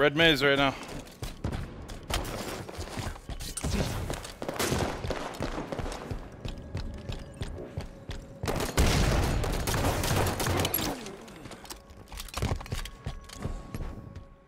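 Rapid gunfire crackles and pops.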